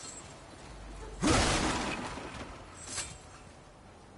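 Wooden stakes smash and splinter with a loud crash.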